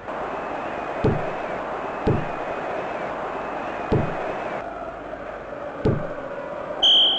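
Synthesized ball kicks thump in a Sega Genesis football game.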